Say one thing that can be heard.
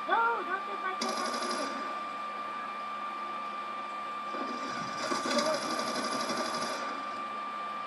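Bursts of rapid gunfire play from a television speaker.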